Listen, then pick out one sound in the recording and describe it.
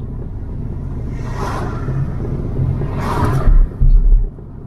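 Another car whooshes past in the other direction.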